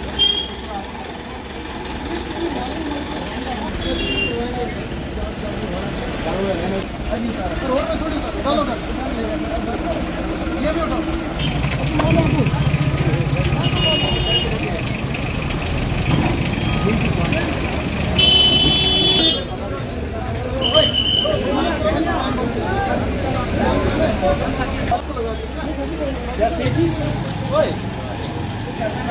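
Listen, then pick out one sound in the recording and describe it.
A crowd of men talk outdoors.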